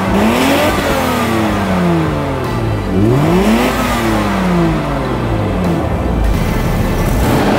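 A car engine revs up and down repeatedly, rising and falling in pitch.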